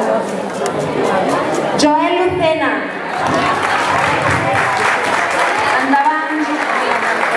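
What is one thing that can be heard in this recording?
A crowd of children and adults chatters loudly nearby.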